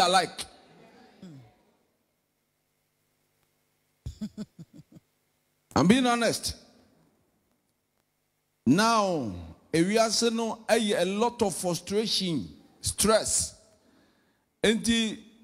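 A young man speaks with animation into a microphone over loudspeakers, in a large echoing hall.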